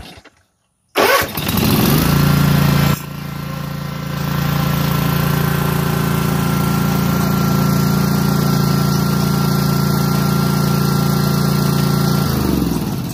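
A riding mower's engine starts and runs with a loud, steady drone.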